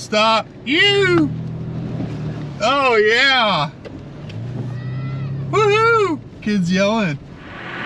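A car engine hums as it drives slowly.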